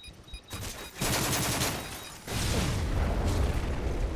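Rapid gunfire crackles loudly.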